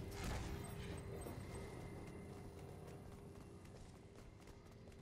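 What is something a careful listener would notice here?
Heavy footsteps thud on dirt as a game character runs.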